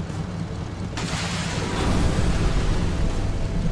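A blast booms ahead.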